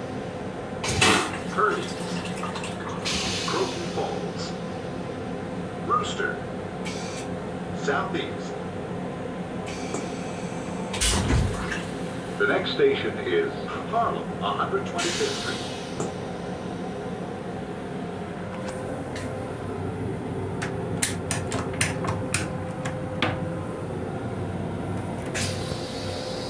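A train rumbles steadily.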